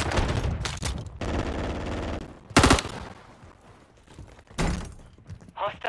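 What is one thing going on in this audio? A rifle fires a burst of loud shots close by.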